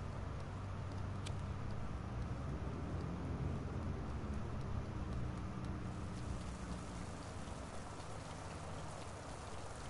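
Small footsteps patter softly on a hard floor.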